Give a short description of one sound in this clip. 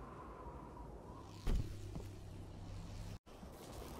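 A heavy thud lands after a jump.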